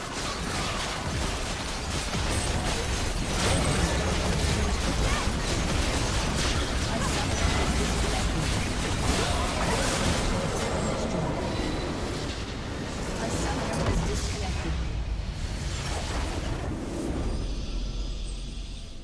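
Game spell effects crackle and explode in a fight.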